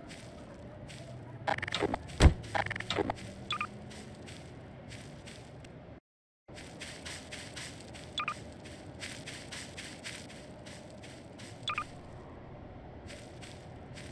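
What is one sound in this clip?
A toy ray gun fires with an electric zap.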